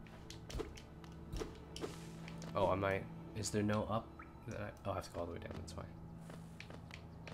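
Light, quick footsteps tap on stone.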